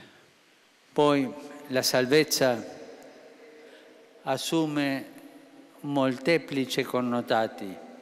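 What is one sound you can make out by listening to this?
An elderly man reads aloud calmly into a microphone.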